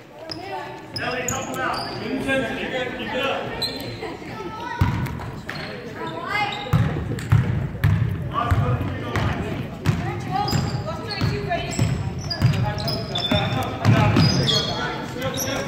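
Sneakers squeak sharply on a hard floor.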